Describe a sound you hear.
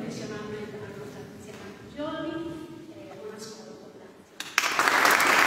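A women's choir sings softly in a large echoing hall.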